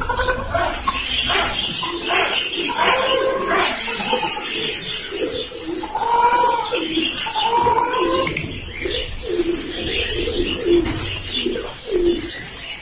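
Baby raccoons chitter and whimper up close.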